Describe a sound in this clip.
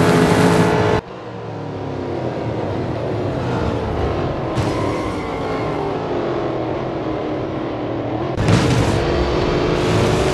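Racing cars roar past one after another.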